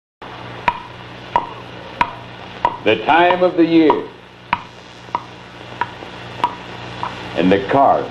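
A clock ticks loudly and steadily.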